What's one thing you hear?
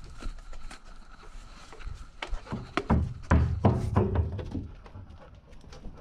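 A hose reel clatters as it is handled close by.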